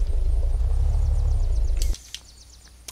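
A car engine rumbles steadily, then cuts off.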